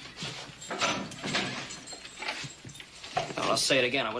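A metal cell door rattles.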